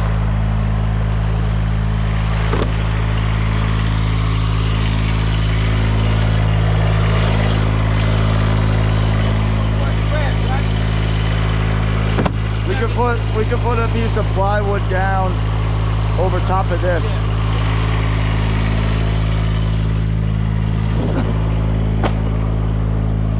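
A machine engine idles steadily throughout.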